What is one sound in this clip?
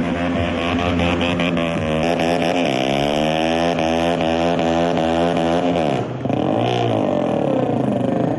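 A motorcycle's rear tyre squeals as it spins on the pavement.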